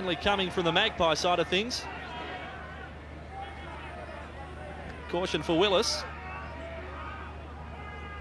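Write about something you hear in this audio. A stadium crowd murmurs in the distance.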